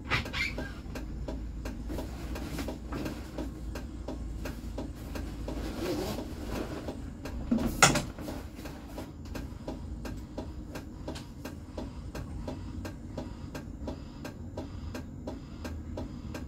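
Tram wheels click rhythmically over the rails.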